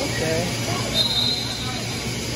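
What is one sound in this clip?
Sneakers squeak on a hard court in a large echoing hall.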